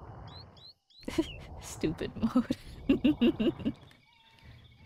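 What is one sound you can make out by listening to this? A young woman talks and laughs with animation into a microphone.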